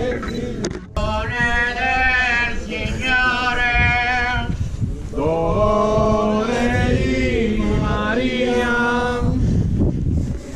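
A group of men sings a slow chant outdoors.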